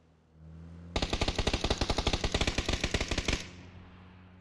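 Footsteps patter quickly on hard ground.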